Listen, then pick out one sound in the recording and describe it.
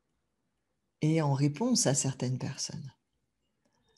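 A middle-aged woman speaks warmly and calmly into a close microphone.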